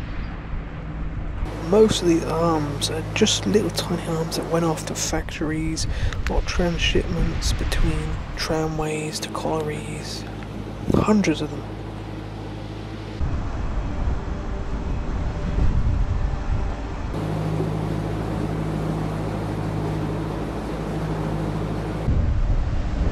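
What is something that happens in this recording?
A boat engine hums steadily and low close by.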